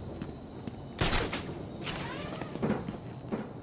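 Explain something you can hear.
A small explosion bursts with a sharp bang.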